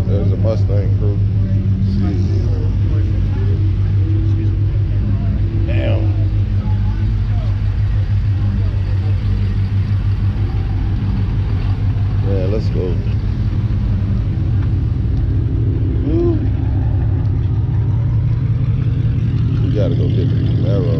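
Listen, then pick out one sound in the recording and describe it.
A crowd of adults chats outdoors.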